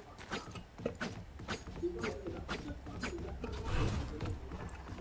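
Footsteps tap across a wooden floor.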